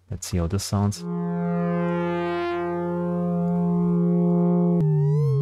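A synthesizer plays a steady, buzzy tone that ends with a short wobble.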